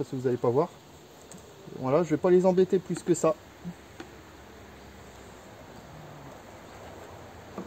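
Bees hum softly around an open hive.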